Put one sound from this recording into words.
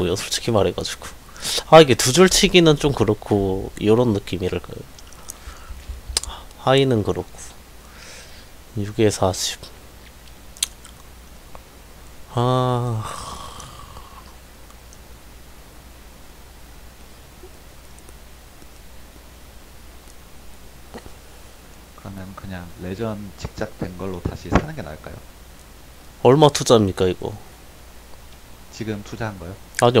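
A young man talks with animation into a close microphone, in short bursts.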